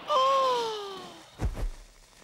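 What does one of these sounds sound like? A woman's high, cartoonish voice cries out in a falling wail.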